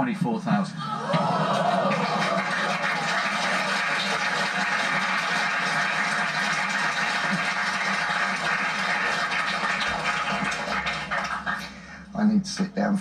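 A studio audience applauds and cheers, heard through a television loudspeaker.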